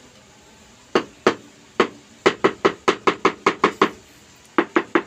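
A rubber mallet taps repeatedly on a floor tile.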